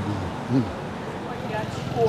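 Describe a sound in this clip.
A car drives past slowly.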